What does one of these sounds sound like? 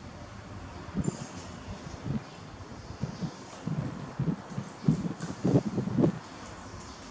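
A plastic bottle thumps and knocks against a wicker basket.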